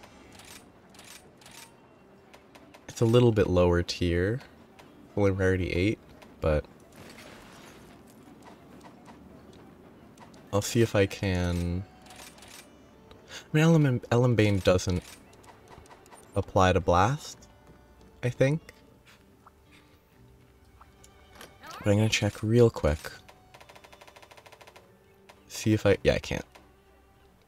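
Soft game menu clicks and beeps sound as options change.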